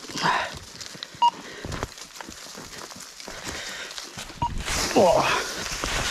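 A spade digs into dry soil.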